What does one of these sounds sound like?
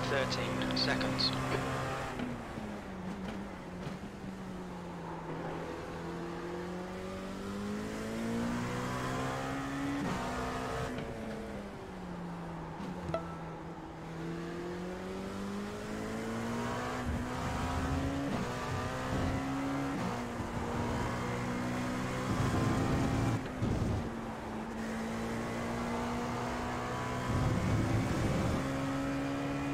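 A racing car engine revs up and down through gear changes.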